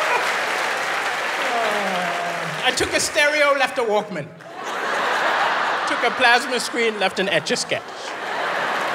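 An audience laughs and claps loudly in a large hall.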